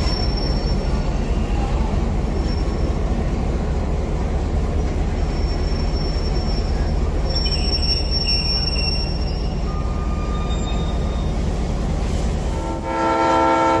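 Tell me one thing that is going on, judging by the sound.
Train carriages roll slowly past with a low, steady rumble.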